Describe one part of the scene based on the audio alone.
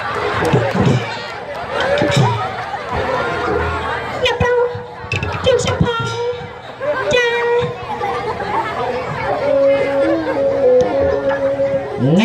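A man speaks loudly and dramatically through a microphone.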